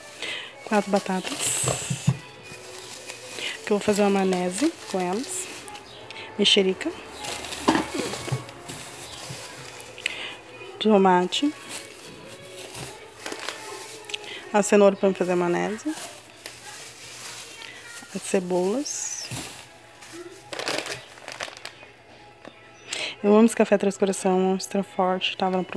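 Plastic bags rustle and crinkle as they are handled close by.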